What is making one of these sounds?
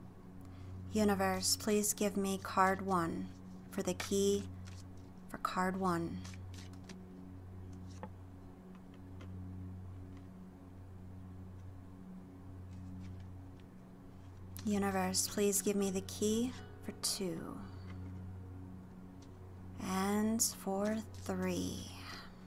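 Playing cards shuffle and riffle softly in hands.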